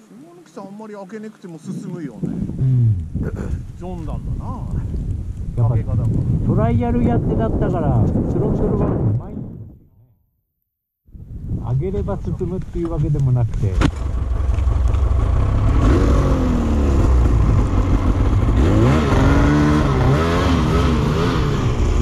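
A snowmobile engine revs up and down close by.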